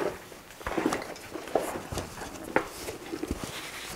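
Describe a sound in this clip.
A bag rustles as it is lifted.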